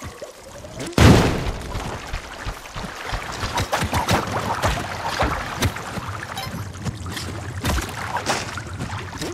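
Water gushes and splashes loudly.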